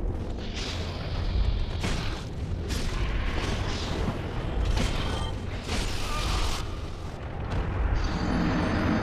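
Sword blows clash and thud against a creature in a fight.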